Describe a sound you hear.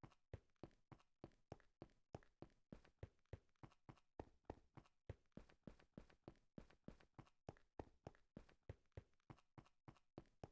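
Quick footsteps thud steadily on hard stone.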